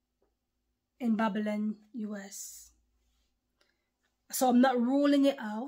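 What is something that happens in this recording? A young woman speaks calmly and closely, in short phrases with pauses.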